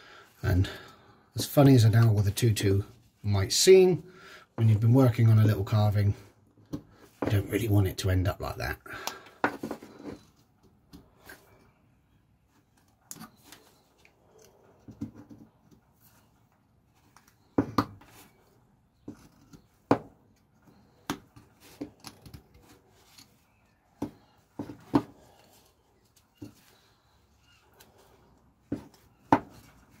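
A knife whittles wood with short, sharp scraping cuts.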